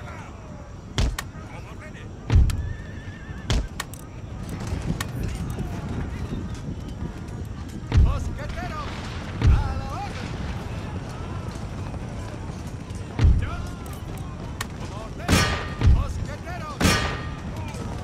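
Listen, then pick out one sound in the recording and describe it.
Guns fire in loud, separate booms.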